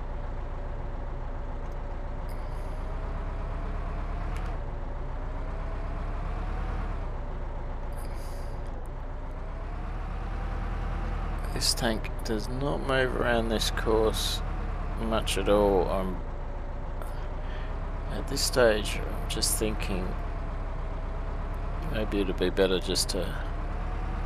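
A tank engine rumbles steadily with a low drone.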